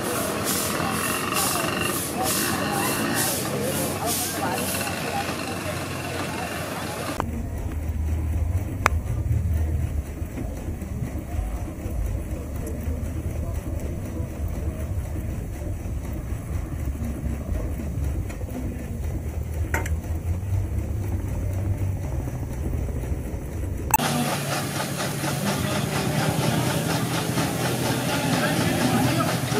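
A steam engine chugs and hisses steadily.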